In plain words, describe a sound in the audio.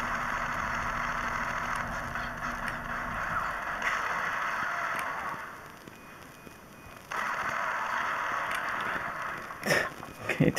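Rapid gunfire rattles from a small handheld game speaker.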